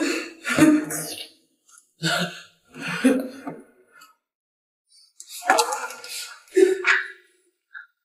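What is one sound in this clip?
A middle-aged woman speaks with distress, close by.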